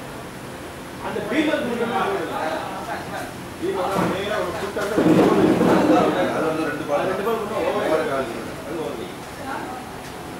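Several men talk and call out outdoors on an open field.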